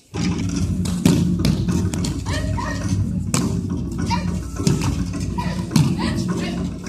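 Bodies thud onto a mat as people are thrown.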